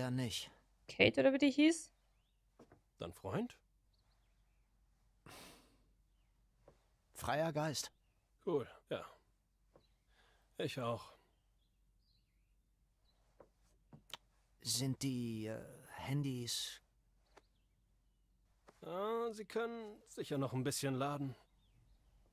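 A second young man answers in a low voice.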